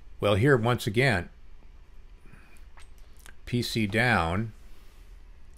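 An elderly man speaks calmly and close to a microphone.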